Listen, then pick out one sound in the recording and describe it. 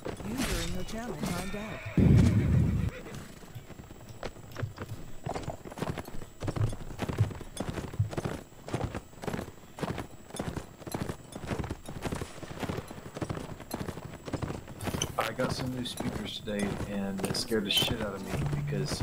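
Horse hooves pound steadily at a gallop.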